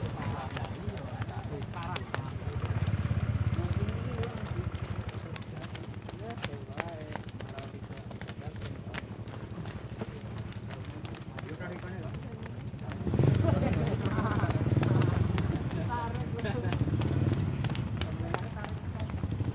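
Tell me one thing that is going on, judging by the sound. Bare feet patter on a paved road as people run past.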